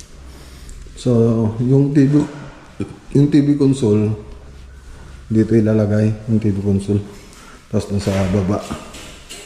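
A man speaks close by, calmly and with pauses.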